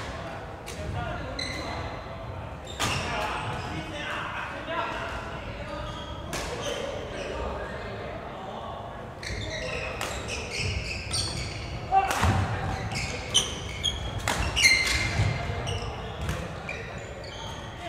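Voices chatter in a large echoing hall.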